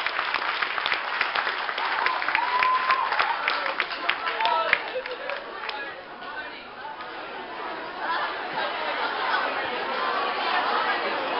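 A crowd of young women chatters and calls out excitedly.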